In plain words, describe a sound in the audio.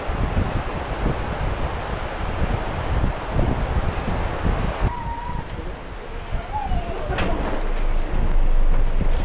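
Wind buffets a microphone outdoors.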